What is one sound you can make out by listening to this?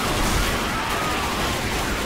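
Guns fire in a video game.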